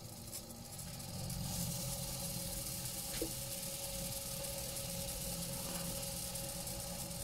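A wood lathe hums steadily as it spins.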